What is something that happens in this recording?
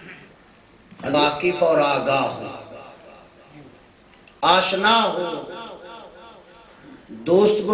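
A man speaks forcefully into a microphone, heard through loudspeakers in an echoing room.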